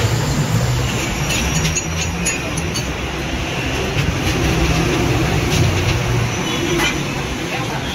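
Metal tools clink against each other.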